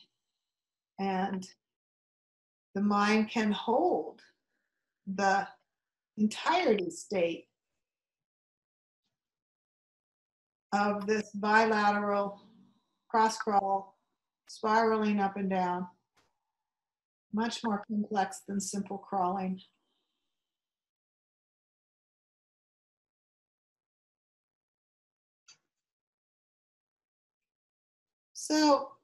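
An older woman speaks calmly and close by, pausing often.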